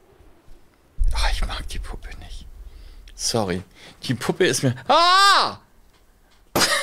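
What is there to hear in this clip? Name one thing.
A young woman speaks with animation and shrieks into a close microphone.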